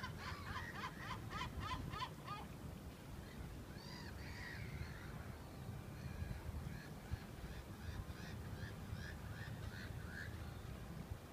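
Birds chirp and call in quick bursts outdoors.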